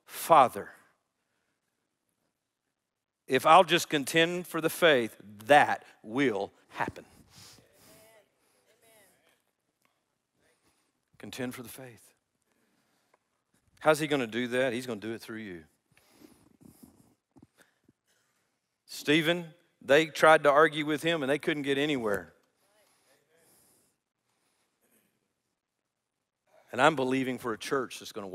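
An older man speaks calmly and deliberately through a microphone, with long pauses between phrases.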